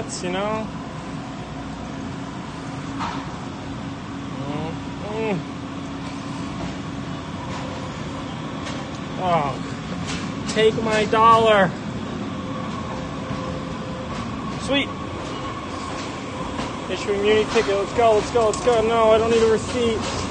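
A young man speaks close to a phone's microphone in short bursts.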